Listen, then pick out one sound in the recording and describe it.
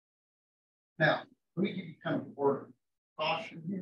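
A man lectures.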